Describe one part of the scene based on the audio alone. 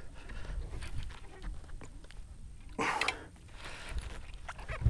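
A fishing reel clicks as line is reeled in.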